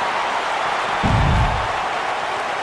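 A body slams heavily onto the floor.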